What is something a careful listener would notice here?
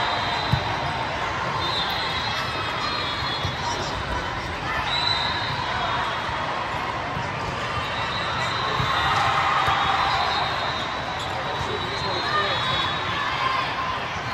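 A crowd of players and onlookers chatters and calls out in the background.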